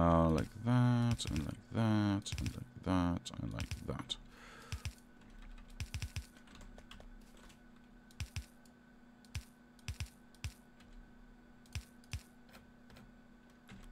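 Short soft clicks sound as track pieces are placed one after another.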